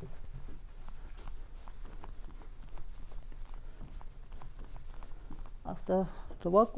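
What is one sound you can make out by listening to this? A man erases a chalkboard with a brush, rubbing steadily.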